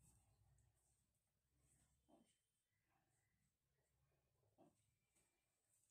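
A small metal cup clinks softly against another.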